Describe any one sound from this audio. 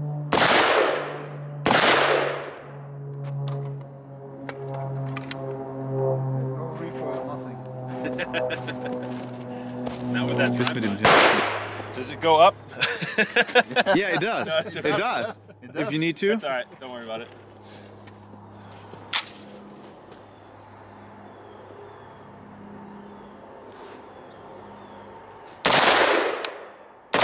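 Rifle shots crack loudly outdoors, each followed by a short echo.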